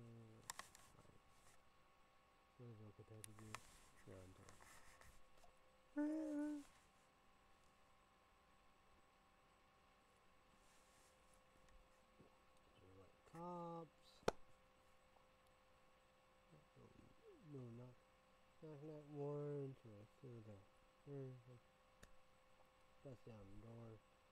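A young man talks casually and close by, in short bursts with pauses.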